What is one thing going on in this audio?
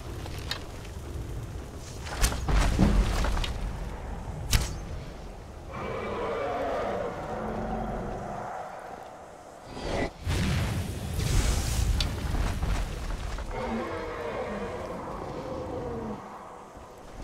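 A magical arrow crackles and hums.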